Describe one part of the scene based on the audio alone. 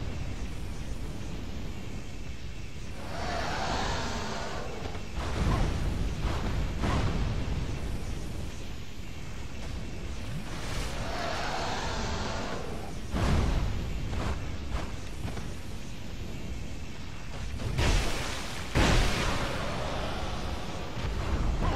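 A sword whooshes through the air.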